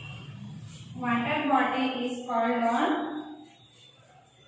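A woman speaks clearly, close by, as if teaching.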